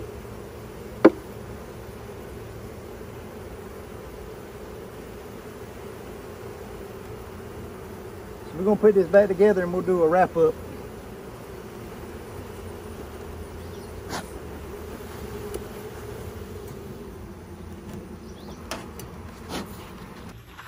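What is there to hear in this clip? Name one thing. Wooden hive frames knock and clack.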